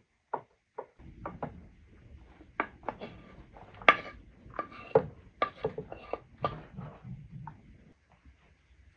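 Chopped beetroot is scraped off a board into a bowl with a knife.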